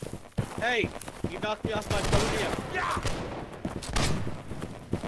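Muskets fire with loud, sharp bangs.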